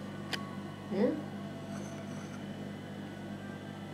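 A spoon stirs tea in a porcelain cup.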